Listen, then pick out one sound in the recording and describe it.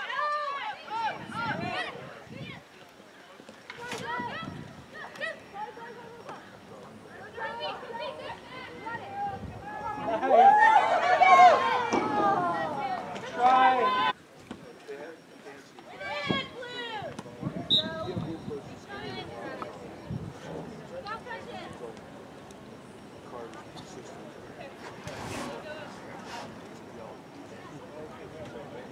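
Young women shout to one another across an open field.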